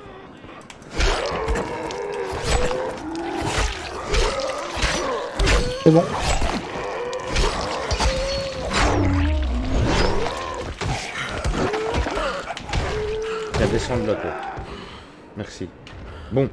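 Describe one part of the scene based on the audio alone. Blades slash and thud into bodies in a game fight.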